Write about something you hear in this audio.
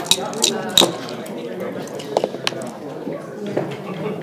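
Dice clatter onto a wooden board.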